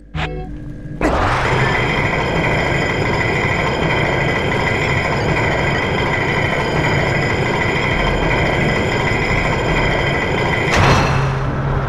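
A spinning top whirs loudly and steadily as it rides along a rail.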